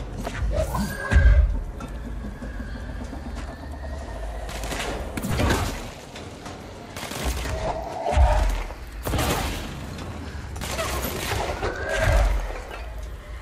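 Heavy objects crash and thud with deep booms.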